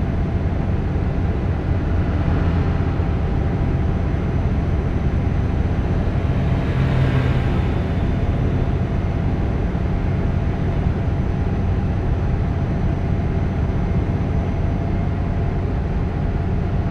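Tyres roll steadily over a road.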